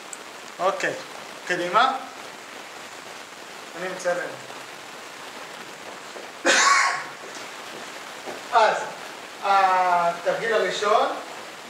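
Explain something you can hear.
A man talks nearby.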